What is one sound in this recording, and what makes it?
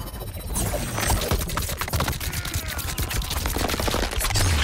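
A blade slashes and strikes with wet, crunching impacts.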